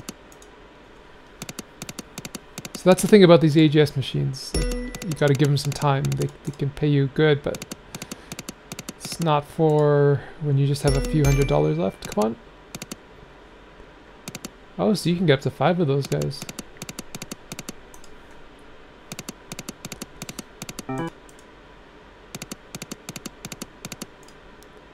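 Slot machine reels spin with quick ticking clicks.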